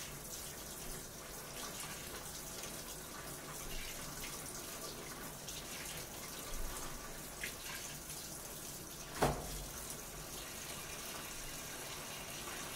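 A front-loading washing machine churns and tumbles.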